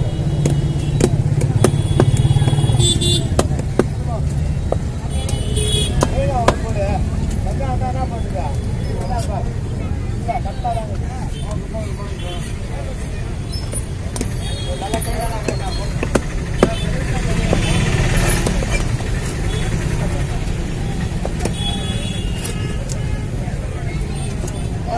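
A machete chops through fish on a board with sharp knocks.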